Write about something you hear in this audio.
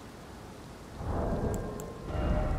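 A menu chime sounds with a soft swell.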